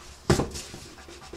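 A sheet of paper rustles and slides under hands.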